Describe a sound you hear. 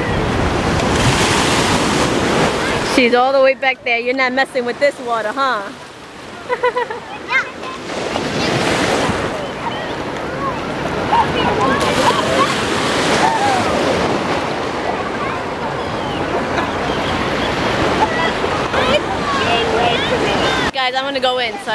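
Waves wash and splash on the shore.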